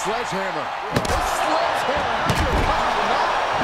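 A wooden stick strikes a body with loud thwacks.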